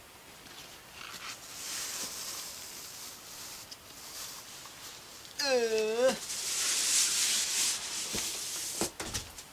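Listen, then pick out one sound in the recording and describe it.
A cardboard box scrapes and rustles as it is moved.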